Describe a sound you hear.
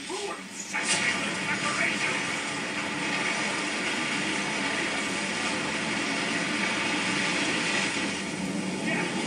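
Magic spell blasts rush and roar loudly from a television speaker.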